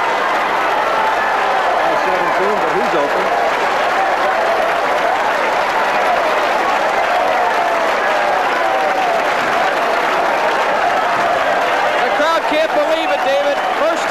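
A large crowd whistles and shouts.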